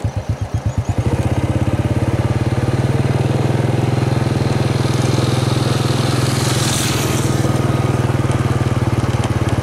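A motorbike engine putters steadily close by.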